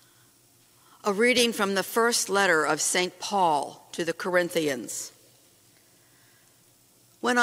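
A middle-aged woman reads aloud into a microphone in a slightly echoing room.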